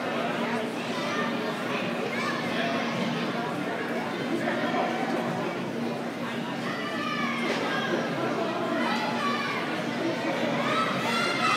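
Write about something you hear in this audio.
Many young people chatter and call out across a large echoing arena.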